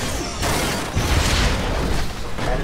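A loud explosion booms and crashes.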